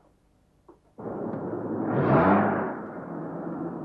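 Outdoor street bustle rumbles steadily.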